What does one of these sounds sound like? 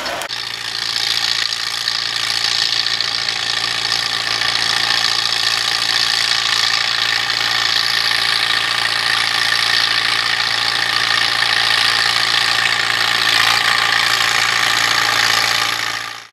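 A plough scrapes through soil.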